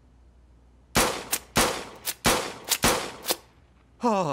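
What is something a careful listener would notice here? Gunshots ring out several times in quick succession.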